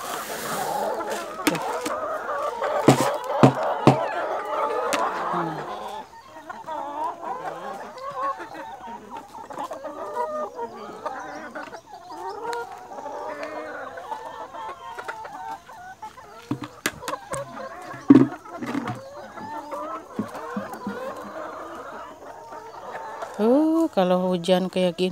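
Many hens cluck and chatter close by.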